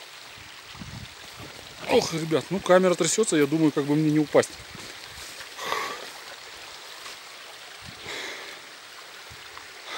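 Footsteps crunch on a rocky trail.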